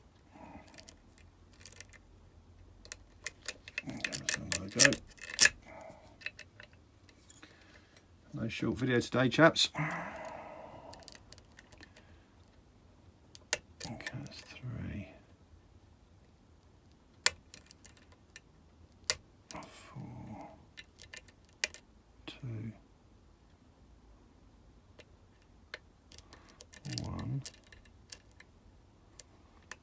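Small metal picks tick and click softly inside a lock.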